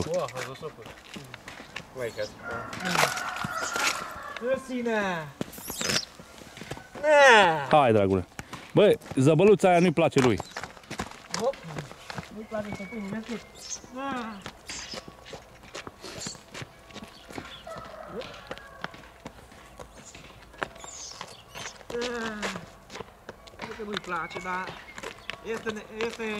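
A horse's hooves thud on packed earth and gravel.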